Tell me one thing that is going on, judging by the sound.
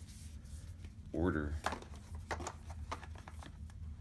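A board book thumps down.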